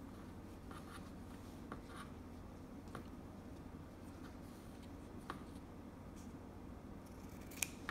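Scissors snip through satin ribbon.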